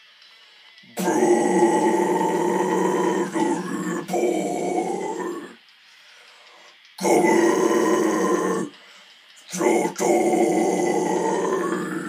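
A young man sings loudly and harshly into a close microphone, in long held phrases.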